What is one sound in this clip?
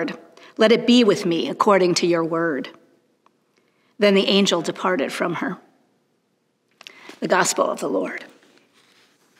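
A middle-aged woman reads aloud calmly and clearly, close to a microphone.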